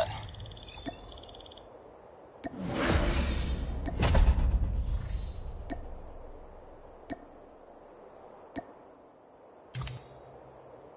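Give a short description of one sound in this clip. Game menu sounds click and chime.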